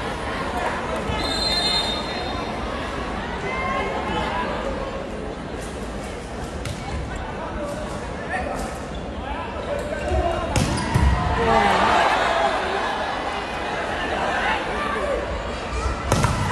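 A crowd cheers and shouts throughout a large echoing hall.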